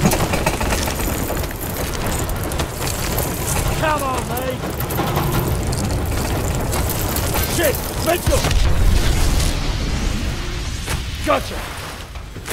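Explosions and gunfire roar and crackle loudly.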